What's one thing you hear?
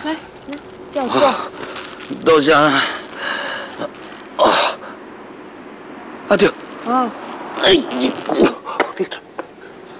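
A man speaks weakly close by.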